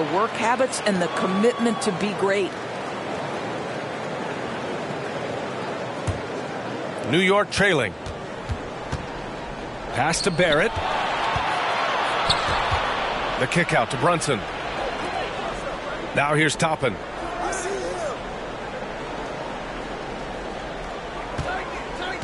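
A large crowd murmurs and cheers in a big arena.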